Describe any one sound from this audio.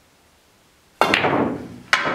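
A cue strikes a billiard ball with a sharp click.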